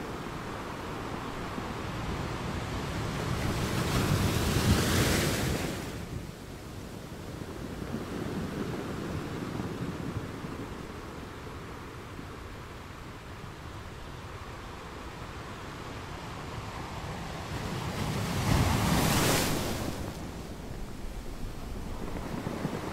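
Ocean waves crash and break on rocks, with the sea rushing and hissing steadily between them.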